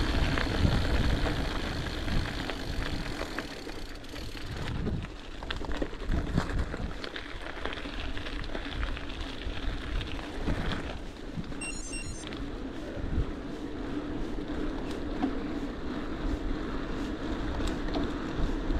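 Wind rumbles and buffets against a rider.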